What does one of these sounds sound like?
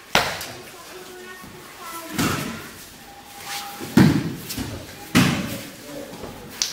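Feet shuffle and slap on a mat.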